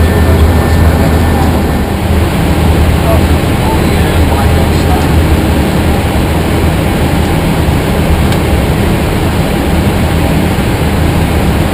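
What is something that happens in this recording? Jet engines and rushing air roar steadily and loudly.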